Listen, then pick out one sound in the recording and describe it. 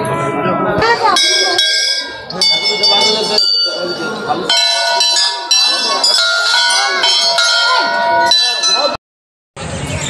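Metal temple bells ring and clang, their tones ringing on.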